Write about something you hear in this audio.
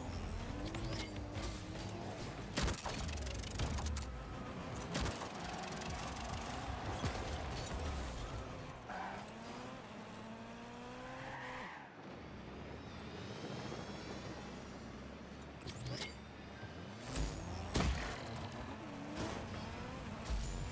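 A game car's engine hums and roars as it drives.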